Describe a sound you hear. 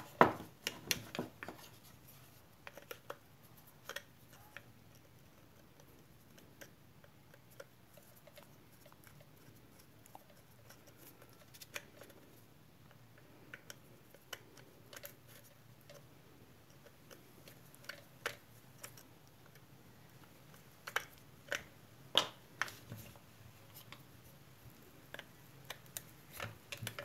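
Metal parts of a power tool knock together as they are handled.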